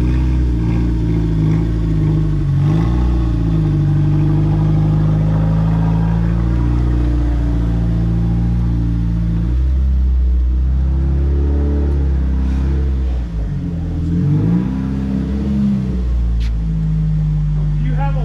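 A car engine idles with a deep, throaty rumble and revs up and down.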